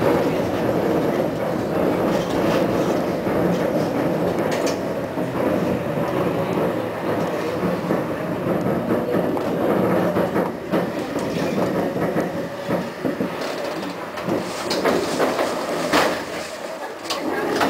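A vehicle's engine and wheels rumble steadily while driving.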